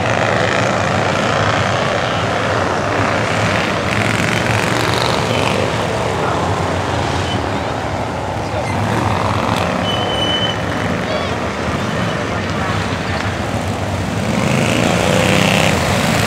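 Race car engines roar loudly as cars speed past close by.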